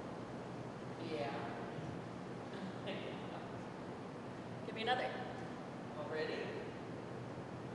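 Another young woman answers, talking in a large echoing hall.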